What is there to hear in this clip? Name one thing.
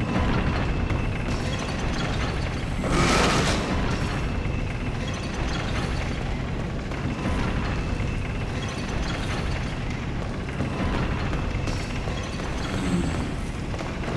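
Footsteps crunch on a gravelly floor.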